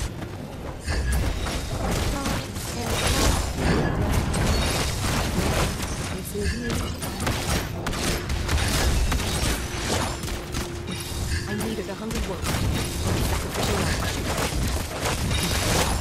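Game heroes clash with bursts of magic blasts and hits.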